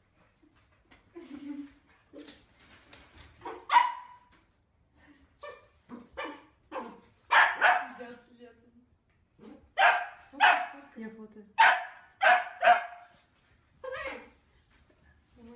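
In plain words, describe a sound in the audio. A small dog barks sharply and repeatedly.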